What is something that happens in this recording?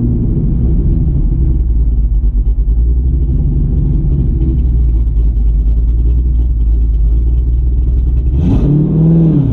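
A car engine rumbles at idle.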